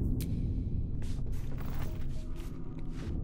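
A candle fire crackles softly.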